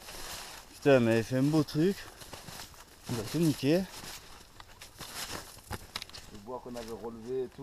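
Footsteps crunch on snow and dry ground.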